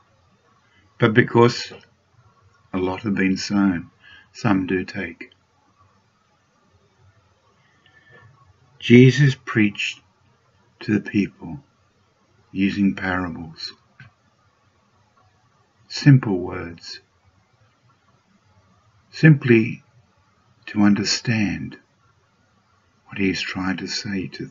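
An elderly man speaks calmly in short phrases through a microphone on an online call.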